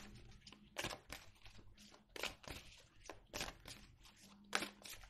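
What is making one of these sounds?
Playing cards rustle and slap softly as they are shuffled by hand.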